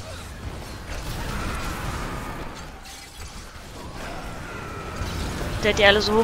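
Magic spells crackle and blast in rapid bursts.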